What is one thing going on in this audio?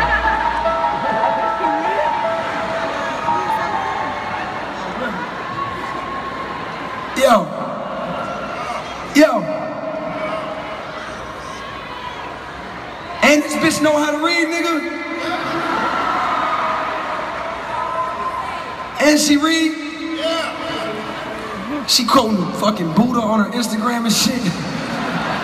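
A man raps loudly into a microphone through loudspeakers, in a large echoing hall.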